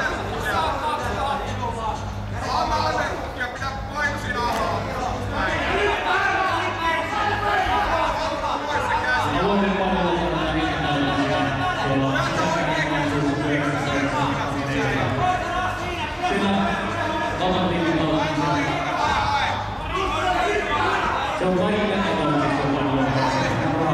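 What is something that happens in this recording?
Men in a crowd of spectators shout and call out loudly in a large echoing hall.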